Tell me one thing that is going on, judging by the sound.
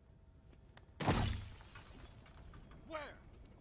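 Flames burst with a loud whoosh.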